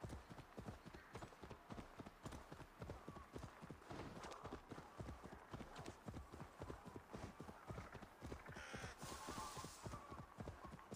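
Dry grass rustles and swishes as a horse runs through it.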